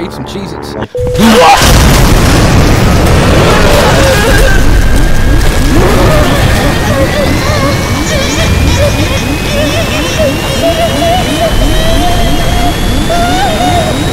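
A loud rushing roar and rumble of an aircraft breaking apart fills the air.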